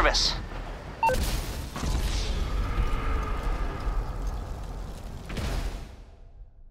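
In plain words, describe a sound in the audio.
A loud explosion bursts and roars.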